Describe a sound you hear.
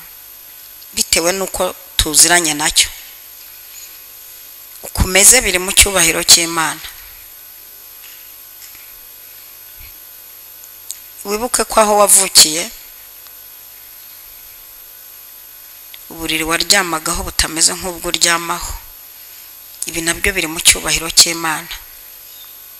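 A woman speaks slowly into a microphone in bursts with long pauses, heard through loudspeakers.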